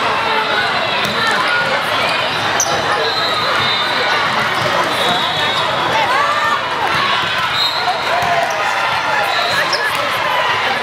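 A crowd of people chatters and calls out in a large echoing hall.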